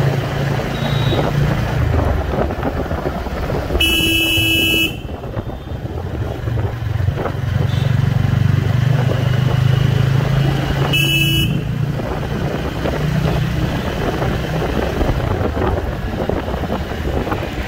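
Wind rushes past as the motorcycle moves along.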